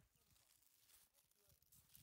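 Footsteps crunch on dry ground.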